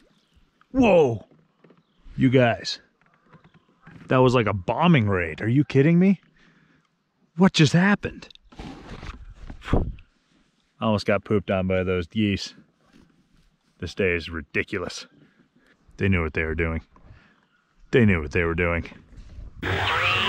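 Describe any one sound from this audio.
An adult man talks calmly, close to the microphone.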